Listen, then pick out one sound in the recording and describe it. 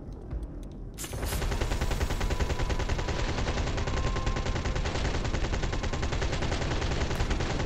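A rapid-fire gun shoots in a fast, steady stream.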